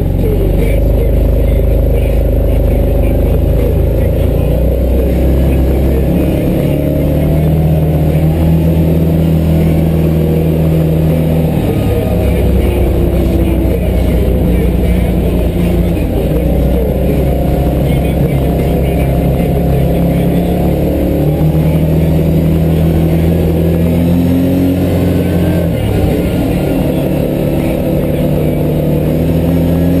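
An engine roars steadily close by, rising and falling in pitch as it changes gear.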